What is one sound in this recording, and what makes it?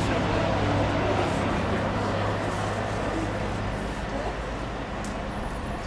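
Tent canvas rustles and flaps as it is handled.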